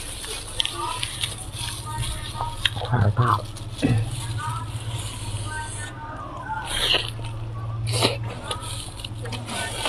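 Lettuce leaves crunch and rustle close to a microphone.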